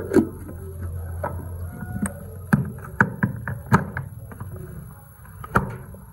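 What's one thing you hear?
A plastic lid clicks into place on a chopper bowl.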